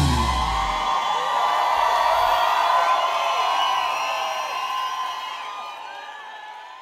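A large crowd cheers and screams loudly in a big echoing hall, then slowly fades.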